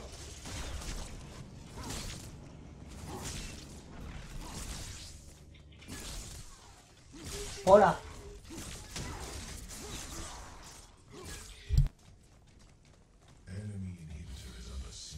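Weapons fire in quick bursts with bright magical blasts.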